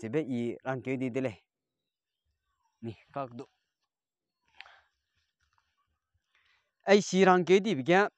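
A young man speaks calmly close to a microphone, in short bursts with pauses.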